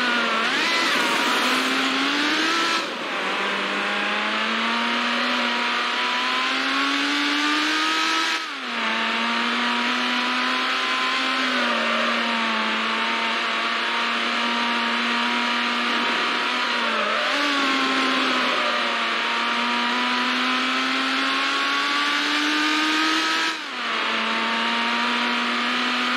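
A racing car engine roars loudly, rising in pitch and dropping sharply at each gear change.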